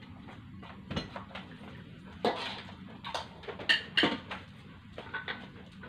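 Metal dishes and utensils clink on a table.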